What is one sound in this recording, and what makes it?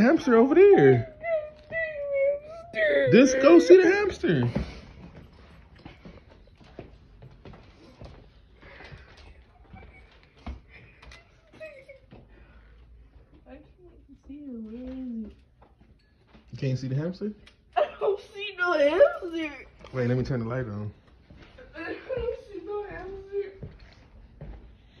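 A young man talks excitedly and laughs close by.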